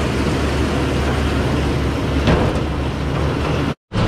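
A baler's rear gate swings shut with a clunk.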